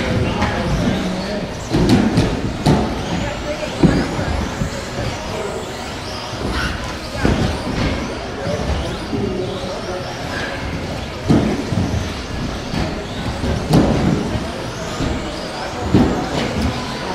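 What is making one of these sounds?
Small electric model car motors whine as the cars speed around, rising and falling.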